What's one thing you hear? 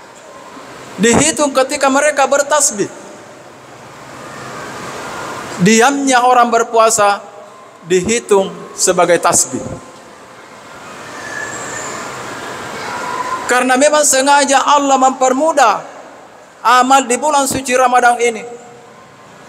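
An elderly man speaks into a microphone, heard through loudspeakers in a large echoing hall, in slow, measured phrases.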